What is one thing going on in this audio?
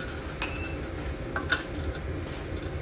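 Metal parts click and clatter under a hand at work.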